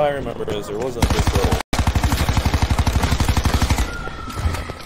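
A gun fires in a rapid burst.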